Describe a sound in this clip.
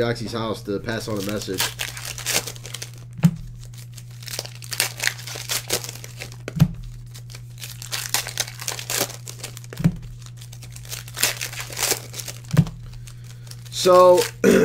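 Foil card wrappers crinkle and tear as hands open them.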